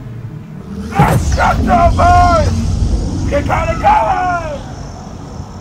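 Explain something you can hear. A man screams and growls loudly close by.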